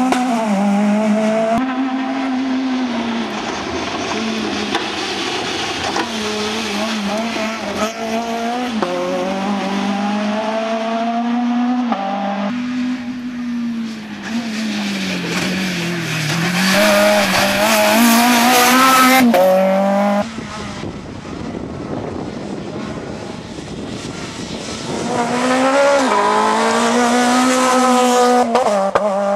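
A rally car engine roars and revs hard, rising and falling in pitch as it shifts gears.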